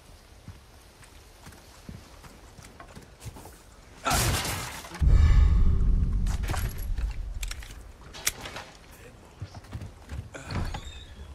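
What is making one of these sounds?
Footsteps crunch slowly over wet ground.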